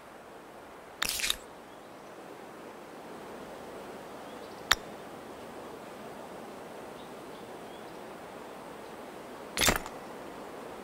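Short interface clicks sound a few times, spaced apart.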